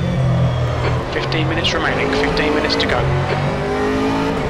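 Tyres squeal briefly through a tight corner.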